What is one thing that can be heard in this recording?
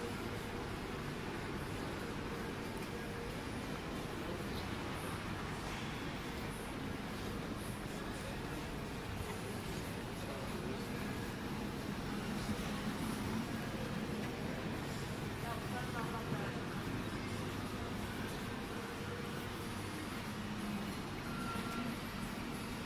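A low murmur of distant voices and bustle fills a large echoing hall.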